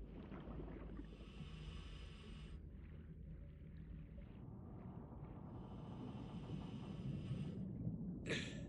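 A diver breathes in through a regulator with a soft hiss.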